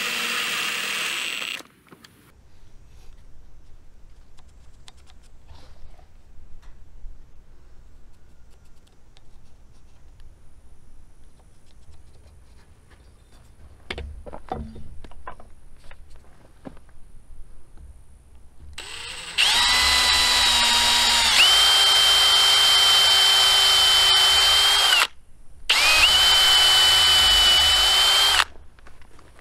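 A cordless drill bores into wood.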